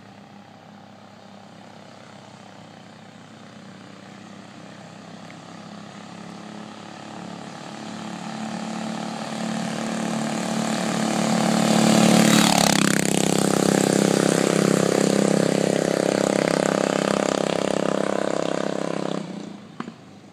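A motorbike engine roars closer, speeds past and drones away down the street.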